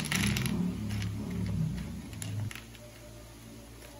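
Crackers clatter softly onto a wooden board.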